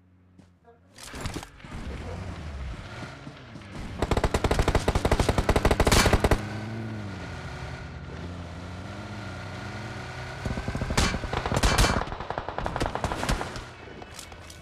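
A car engine hums and revs as the car drives over rough ground.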